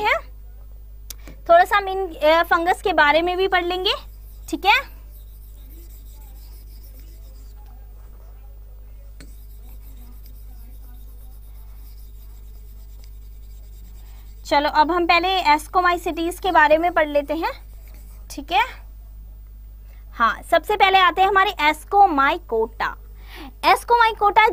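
A woman speaks with animation into a close microphone, pausing at times.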